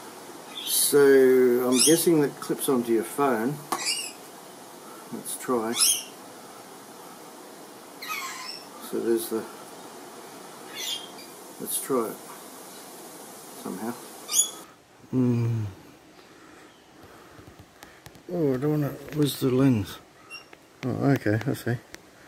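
Small plastic parts click and tap together.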